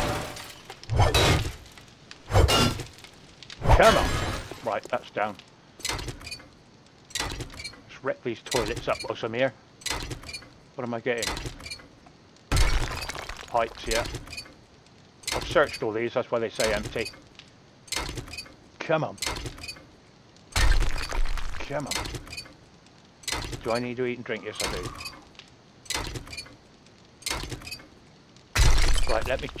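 Heavy blows strike porcelain with loud, sharp cracks.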